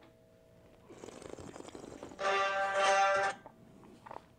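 A man slurps wine noisily.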